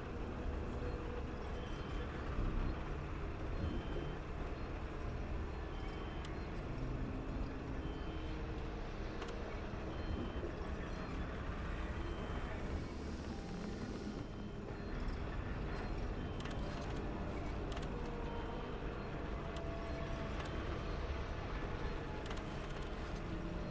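Short soft clicks sound now and then as menu choices change.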